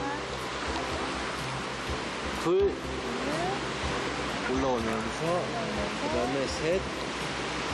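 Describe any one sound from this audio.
Water splashes and churns.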